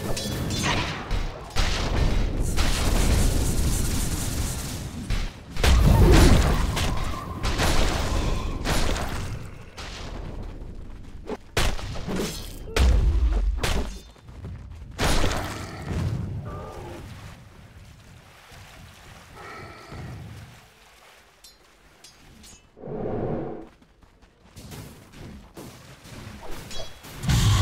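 Magic blasts, whooshes and weapon hits crackle in a video game battle.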